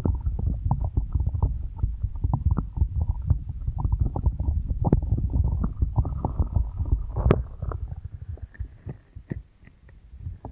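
Fingertips tap and scratch on a microphone close up, in quick soft thumps.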